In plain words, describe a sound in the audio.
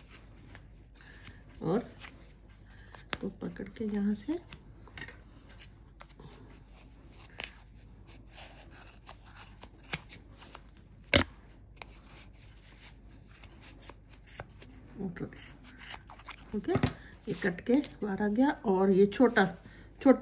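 Yarn and card rustle as hands handle them.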